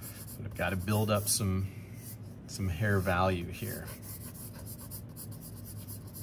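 Fingers rub and smudge paper softly.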